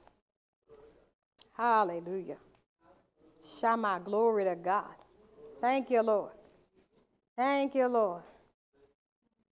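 A woman speaks slowly and calmly into a microphone in short phrases.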